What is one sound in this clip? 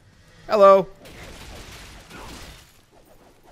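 A sword swishes and strikes in a fight.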